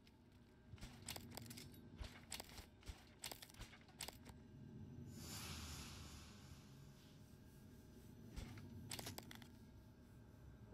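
Metal locker doors click and clatter open.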